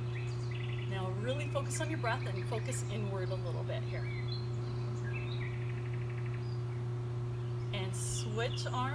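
A woman speaks calmly close by, outdoors.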